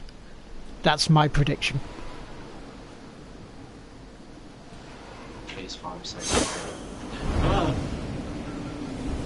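A man talks through a headset microphone.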